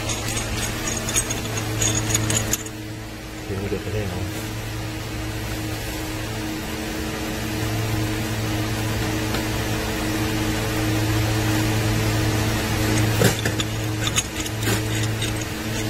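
A pipe wrench grips and turns a plastic pipe fitting.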